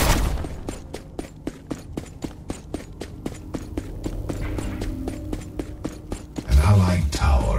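Heavy metallic footsteps thud in a quick, steady rhythm.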